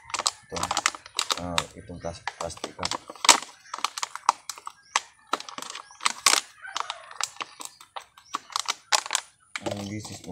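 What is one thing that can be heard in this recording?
Scissors snip through a plastic cup.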